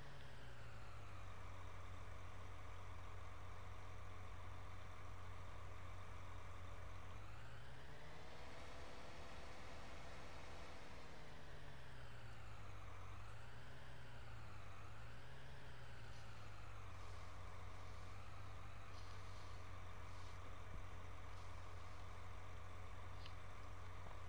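A tractor engine idles steadily, then revs up and down as it drives.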